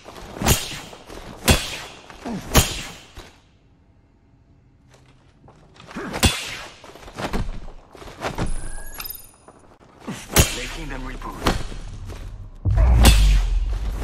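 Heavy punches land with sharp thuds.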